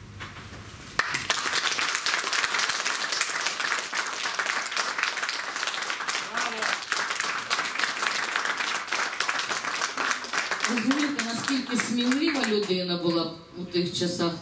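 An audience applauds loudly in a room.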